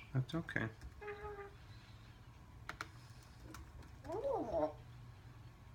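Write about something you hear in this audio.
A parrot whistles in short, clear tones.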